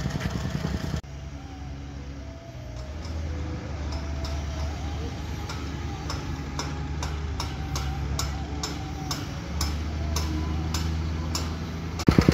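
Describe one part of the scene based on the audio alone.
A wheel loader engine rumbles as it drives closer.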